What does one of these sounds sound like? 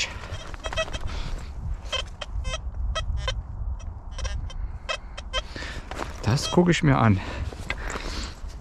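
A metal detector beeps in short, repeated chirps.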